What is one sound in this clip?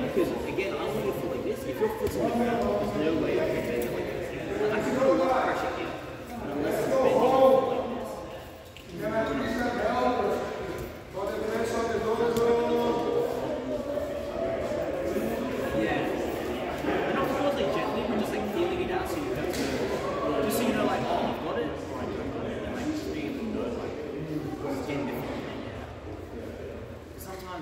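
A man talks calmly and explains, close by, in a large echoing hall.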